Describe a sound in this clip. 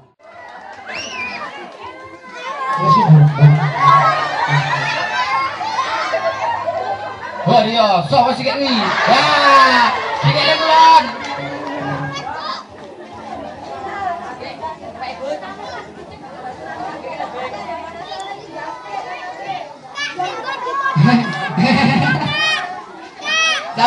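A crowd of children and adults shouts and cheers outdoors.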